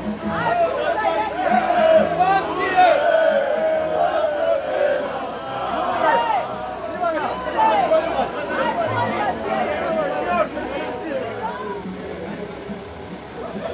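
A man speaks loudly to a crowd from above.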